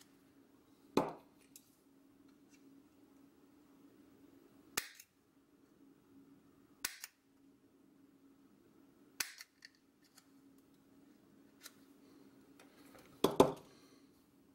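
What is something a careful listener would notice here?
Small metal pliers click and snap sharply now and then.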